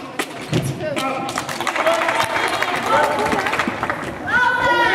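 Young women in the crowd shout and cheer nearby.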